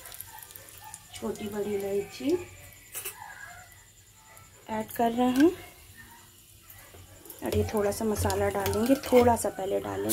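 Hot oil sizzles and bubbles in a pot.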